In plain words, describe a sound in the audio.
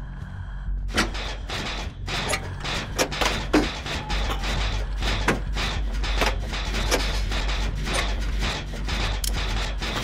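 Metal parts rattle and clank as an engine is worked on.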